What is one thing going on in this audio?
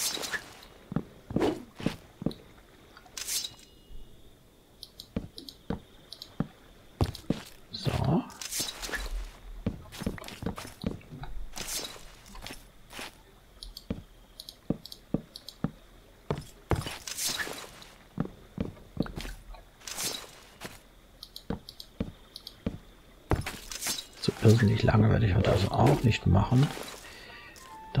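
Wooden blocks are set down with soft hollow clunks.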